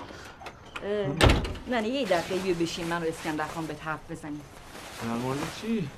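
A middle-aged woman talks and laughs warmly.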